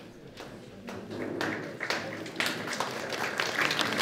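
A crowd murmurs softly in an echoing hall.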